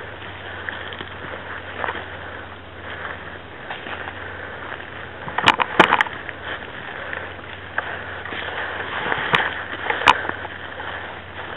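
Footsteps crunch on dry forest ground.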